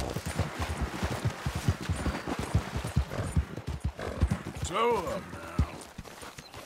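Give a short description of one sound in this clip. Horse hooves pound rapidly on the ground at a gallop.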